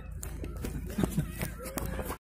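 A bat knocks a ball.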